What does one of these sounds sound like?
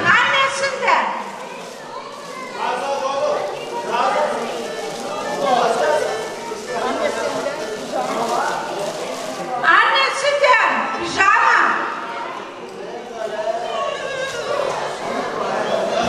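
A middle-aged woman speaks loudly and with animation into a microphone, heard through a loudspeaker.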